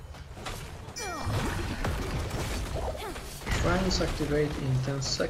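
Game spell effects whoosh and zap.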